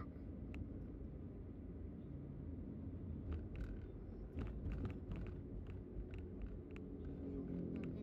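Tyres roll on a road with a low rumble.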